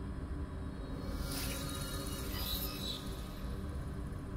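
A shimmering electronic chime rings out and fades.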